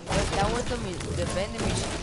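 A pickaxe strikes wood with a dull knock.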